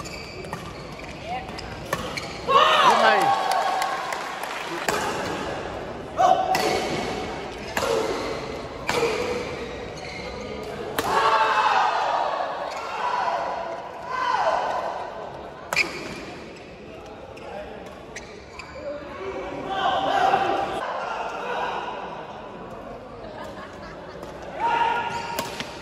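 Shuttlecocks are struck sharply with rackets in a large echoing hall.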